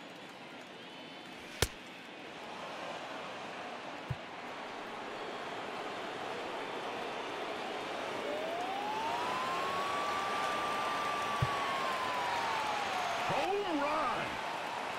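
A stadium crowd murmurs and swells into a cheer.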